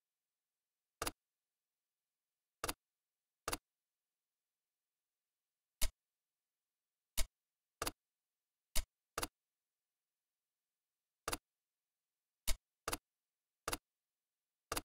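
Short menu clicks tick now and then.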